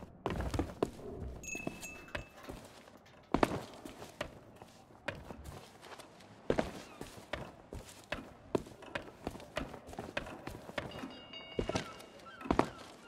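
Footsteps tread on stone paving at a steady walking pace.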